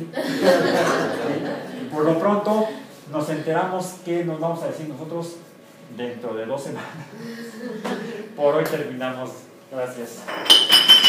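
A man lectures with animation in a room with a slight echo.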